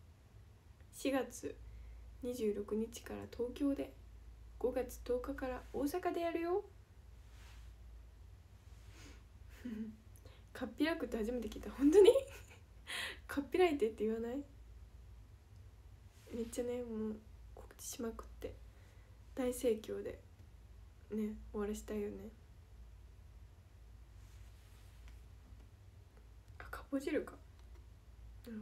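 A young woman talks casually and close to a microphone, in short bursts.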